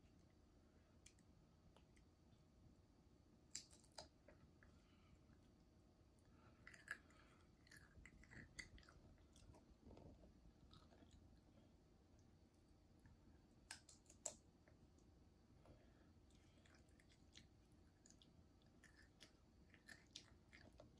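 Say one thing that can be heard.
A young child crunches crisp chips.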